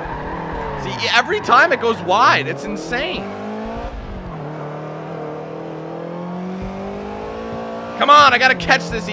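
Tyres squeal sharply through corners.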